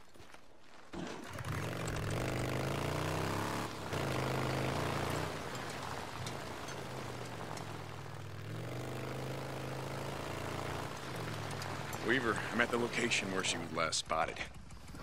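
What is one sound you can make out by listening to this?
A motorcycle engine rumbles steadily as it rides along.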